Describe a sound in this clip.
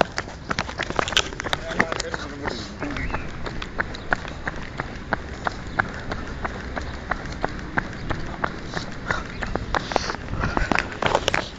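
Footsteps tap steadily on a paved path.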